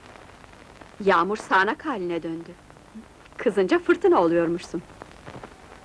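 A young woman speaks loudly and emotionally, close by.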